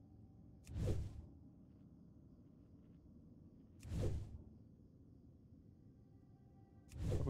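A game's crafting sound effect whooshes briefly, repeating every few seconds.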